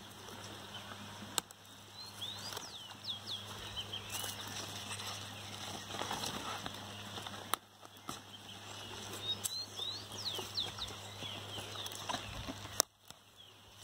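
Leaves rustle and snap as hands pull at a plant.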